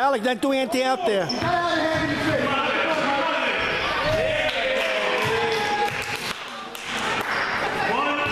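Children shout and cheer loudly in an echoing gym.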